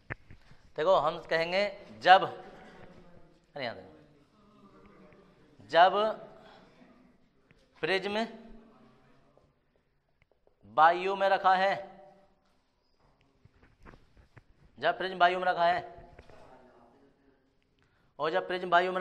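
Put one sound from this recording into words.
A man speaks calmly in short phrases, like a teacher explaining.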